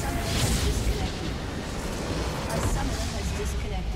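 A deep, booming blast erupts in a game battle.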